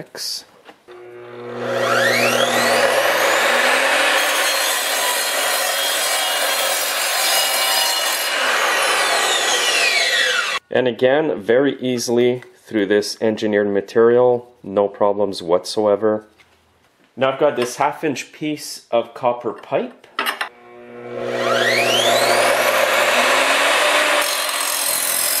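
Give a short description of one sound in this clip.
A mitre saw motor whines loudly, spinning up and then winding down.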